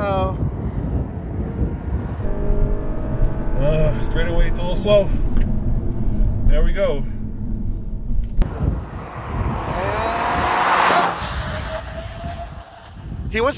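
A car engine revs hard and roars as the car speeds up.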